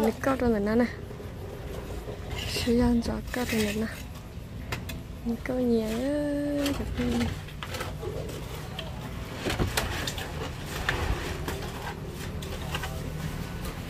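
A trowel scrapes and taps against mortar and concrete.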